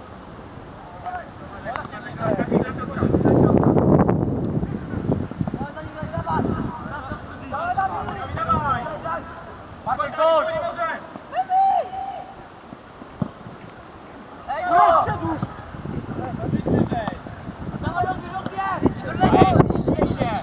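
Children shout to each other across an open outdoor field.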